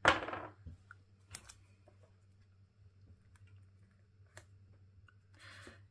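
A sticker crinkles softly as it is peeled off and pressed onto paper.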